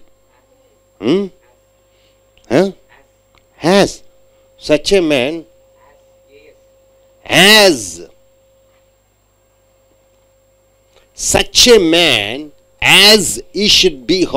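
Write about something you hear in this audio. A middle-aged man speaks slowly and loudly into a microphone, in short phrases with pauses.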